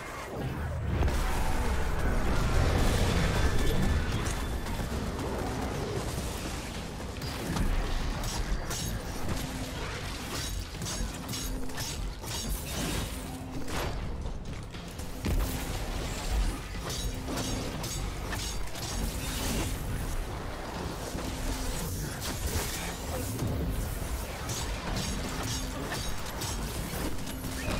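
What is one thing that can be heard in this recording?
Gunfire and explosions from a video game boom and crackle rapidly.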